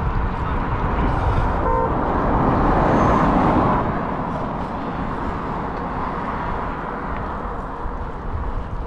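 Wind buffets loudly throughout, rumbling low.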